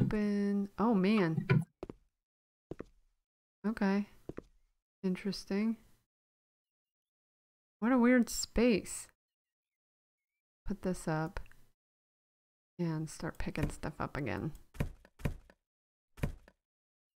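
A young woman talks with animation, close to a microphone, in short bursts.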